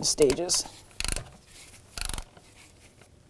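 A ratchet wrench clicks in short bursts as it tightens a bolt.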